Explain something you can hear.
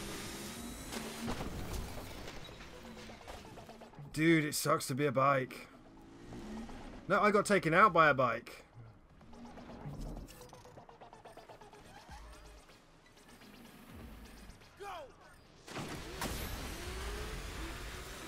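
Water splashes and sprays under racing wheels.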